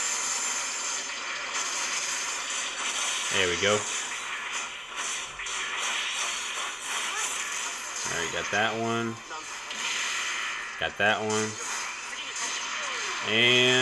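Electronic laser blasts and explosions ring out.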